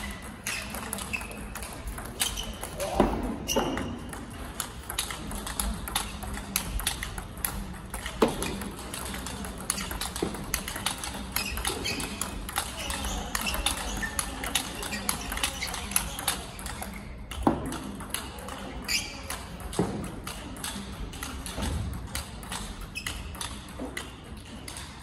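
Sounds echo around a large hall.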